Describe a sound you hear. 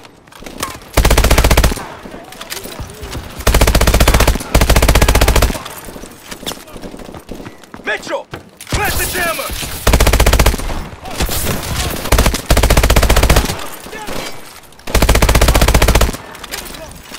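An automatic rifle fires in loud, rapid bursts close by.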